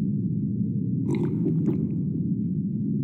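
A person slurps soup from a bowl.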